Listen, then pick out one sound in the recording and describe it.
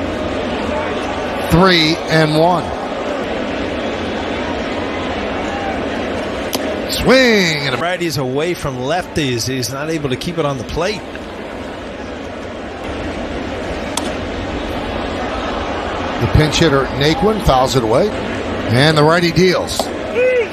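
A large crowd murmurs steadily in a big outdoor stadium.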